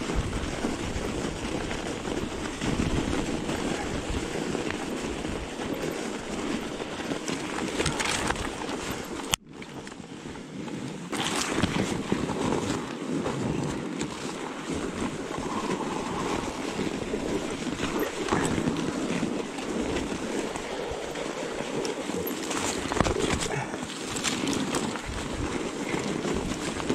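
Wind buffets close by outdoors.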